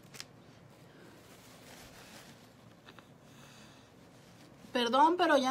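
A woman blows her nose into a tissue.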